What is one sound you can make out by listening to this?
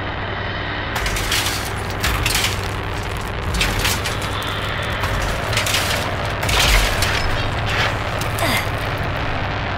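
Hands rummage through a wooden crate with knocks and rattles.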